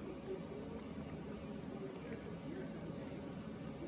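A metal spoon scoops into powdered starch in a plastic tub.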